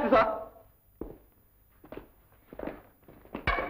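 Footsteps scuffle across a hard floor.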